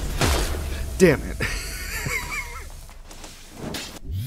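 A loud explosion bursts with crackling debris.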